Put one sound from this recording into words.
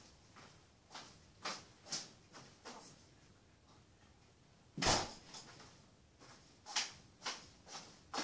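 Footsteps move across a hard floor.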